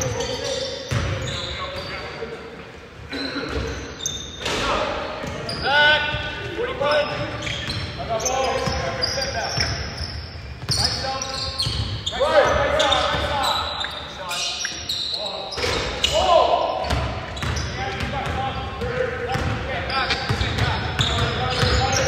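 Adult men shout to each other across the court.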